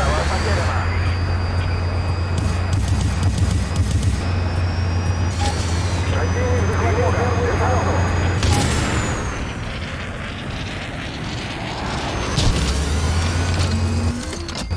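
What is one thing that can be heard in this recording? A helicopter's rotor drones with a steady low thump.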